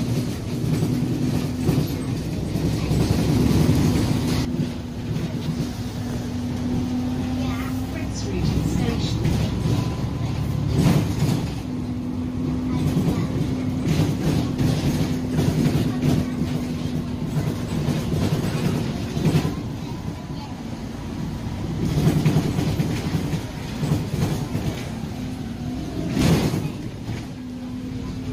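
The bus rattles and clunks as it rolls over the road.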